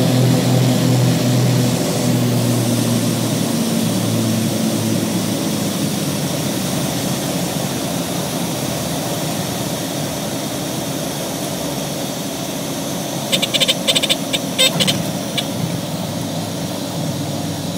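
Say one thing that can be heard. A small plane's engine drones steadily from inside the cockpit.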